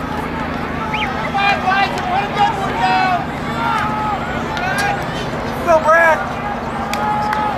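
Spectators cheer and shout as runners pass.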